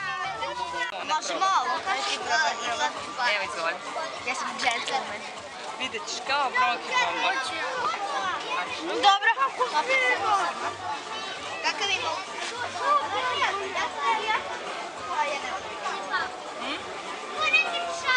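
A woman speaks calmly and kindly to children close by.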